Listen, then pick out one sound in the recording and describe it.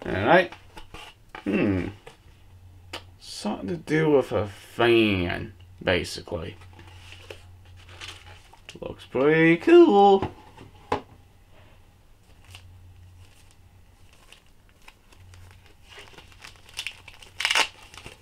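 Cardboard and plastic wrapping rustle in a man's hands.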